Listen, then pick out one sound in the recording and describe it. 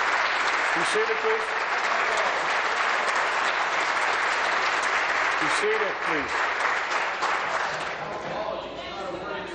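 A crowd claps and applauds in a large echoing hall.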